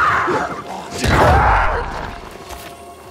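Fire bursts with a crackling whoosh.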